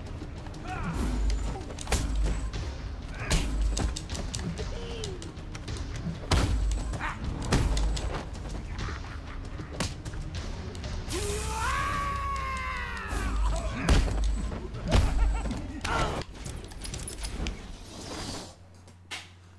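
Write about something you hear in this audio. Punches and kicks land with heavy thuds in a game fight.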